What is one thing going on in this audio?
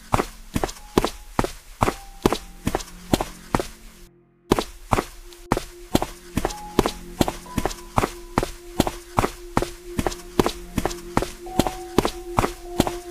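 Quick footsteps thud steadily on a hard floor.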